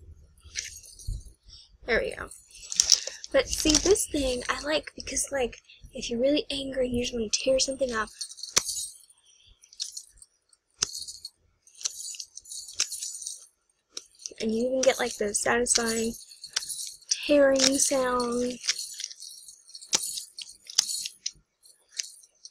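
Sticky slime squishes and crackles between a young woman's fingers.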